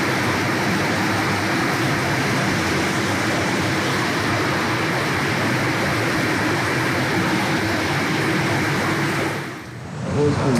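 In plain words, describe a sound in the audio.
Shallow water rushes and splashes.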